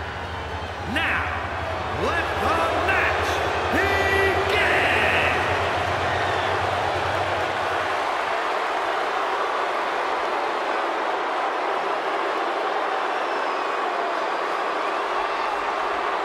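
A large crowd cheers and roars in a huge arena.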